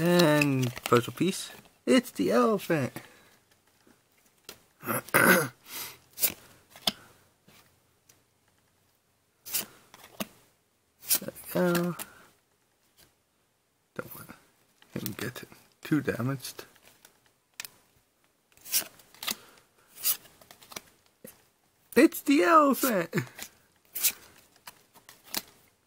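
Playing cards rustle and slide against each other in hands.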